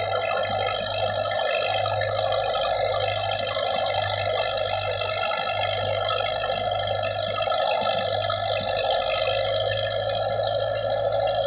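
A threshing machine whirs and rattles steadily.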